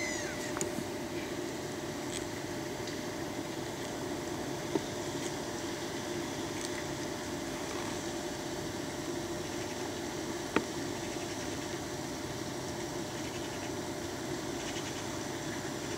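A fishing reel's handle turns with soft clicks.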